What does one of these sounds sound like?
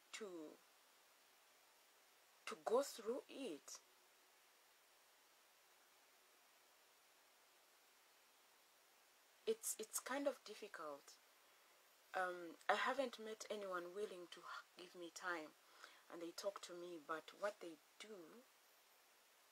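A woman speaks calmly and close by, in short bursts with pauses.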